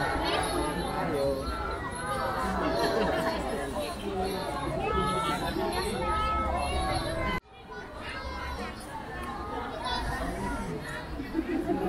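A crowd of people chatters and calls out along a street outdoors.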